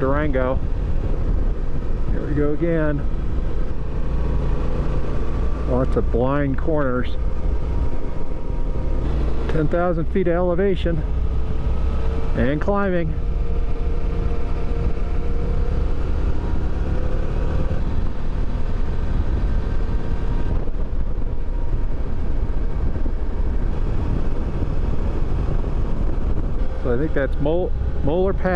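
A motorcycle engine drones steadily, rising and falling in pitch as it revs between gear changes.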